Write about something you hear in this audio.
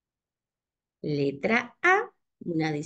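A woman speaks with animation through an online call microphone.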